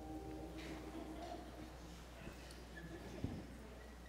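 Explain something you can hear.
A band plays music softly.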